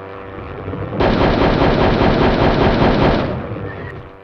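A gun fires a burst with a harsh roar.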